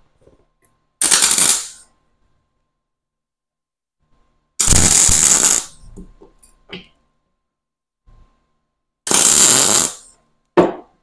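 A welding arc crackles and hisses loudly in short bursts.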